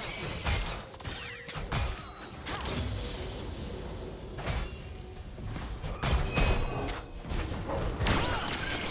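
Magic blasts and weapon hits crackle and thud in a fast skirmish.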